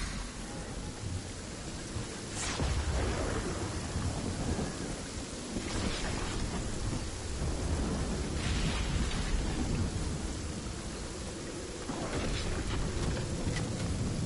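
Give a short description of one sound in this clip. Footsteps thud softly on grass in a game.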